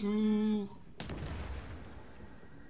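A single gunshot cracks and echoes briefly.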